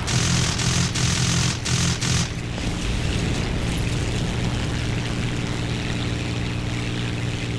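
A helicopter engine drones steadily.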